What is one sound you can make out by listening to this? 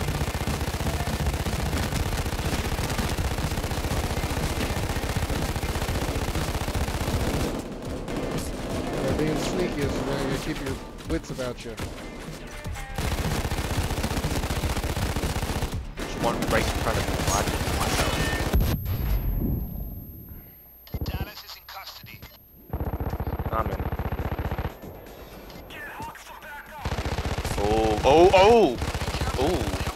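Rapid gunfire crackles and booms.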